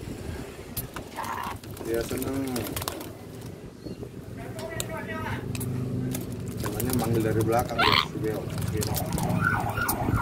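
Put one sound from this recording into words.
Parrots chirp and squawk up close.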